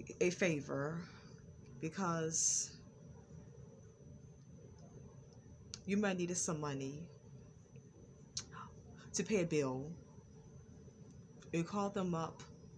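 A woman speaks calmly and slowly, close to the microphone, with short pauses.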